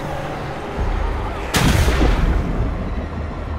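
Water splashes loudly as something plunges in.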